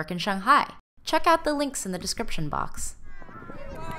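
Young children laugh and shout excitedly close by.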